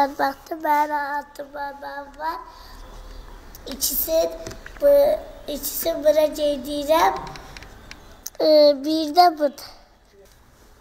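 A young boy speaks calmly close by.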